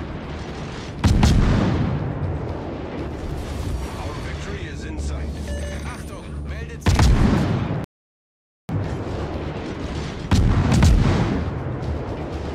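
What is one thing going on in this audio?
Heavy guns fire in loud booming salvos that rumble away.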